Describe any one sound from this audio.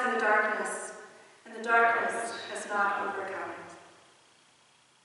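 A woman sings into a microphone in a large echoing room.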